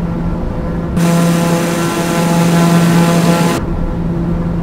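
A jet engine roars louder and brighter for a few seconds.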